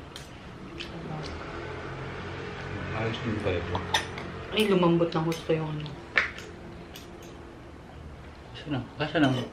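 Metal spoons and forks clink against plates and bowls.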